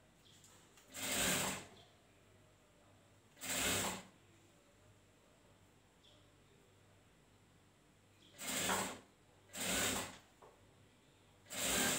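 A sewing machine runs in short bursts.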